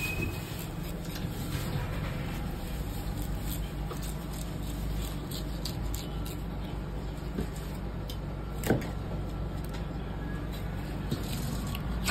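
A knife slices through fish flesh with soft scraping sounds.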